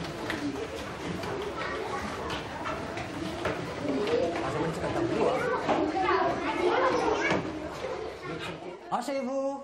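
Many children chatter and call out in a room.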